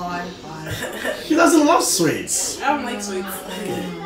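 A girl speaks and laughs close by.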